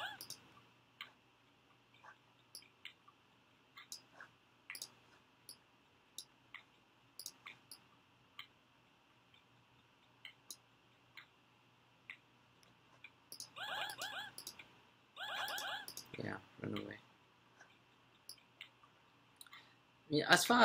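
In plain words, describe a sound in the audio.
A computer mouse clicks now and then.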